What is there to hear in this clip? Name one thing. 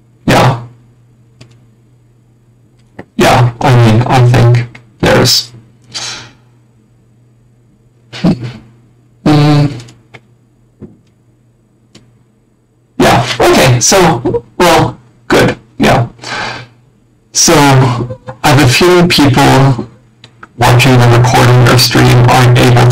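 A man talks with animation over an online call, in short bursts with pauses.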